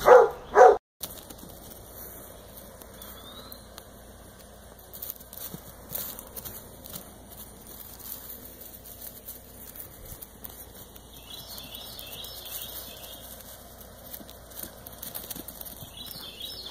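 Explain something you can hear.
A young donkey's hooves thud softly on grass.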